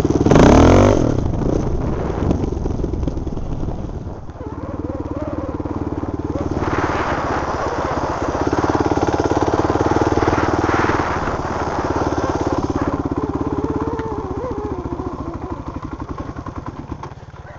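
A dirt bike engine buzzes and revs close by.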